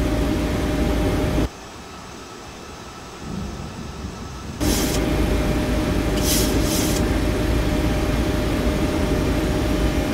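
Windscreen wipers sweep and thump across a cockpit windscreen.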